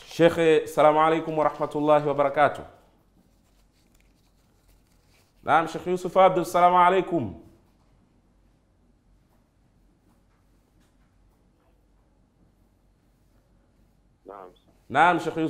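A man speaks calmly into a close microphone, with long pauses.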